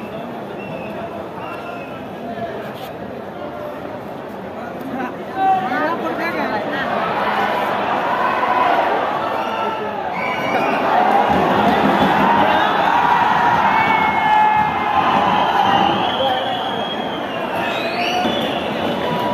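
Football players shout to each other across an open field in the distance.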